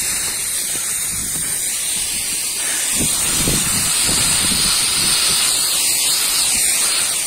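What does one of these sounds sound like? A mist sprayer hisses steadily nearby.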